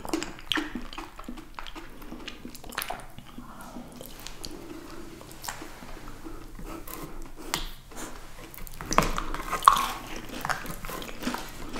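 Two women chew soft food with wet, sticky mouth sounds close to a microphone.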